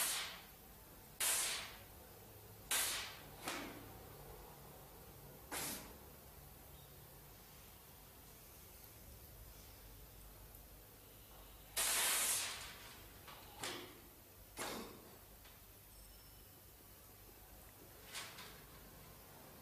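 An elderly man blows short, sharp puffs of air through his lips.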